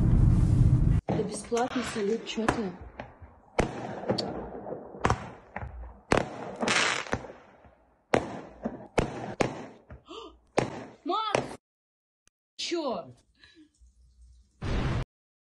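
Fireworks bang and pop in the distance.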